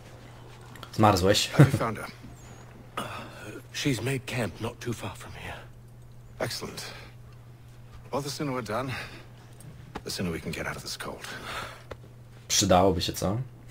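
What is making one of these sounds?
Another man answers in a low, tense voice.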